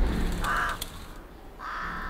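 Birds caw repeatedly from a perch overhead.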